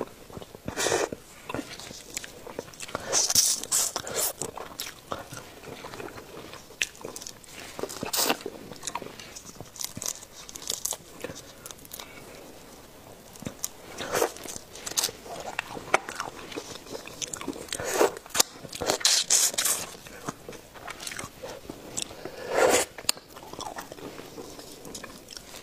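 Gloved fingers crackle as they peel shrimp shells close by.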